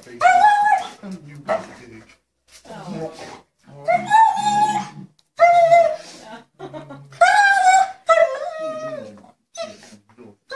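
A dog whines and yelps excitedly, close by.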